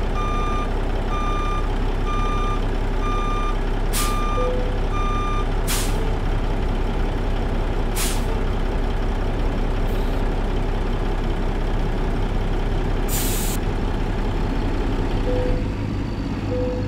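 A diesel truck engine idles with a steady low rumble.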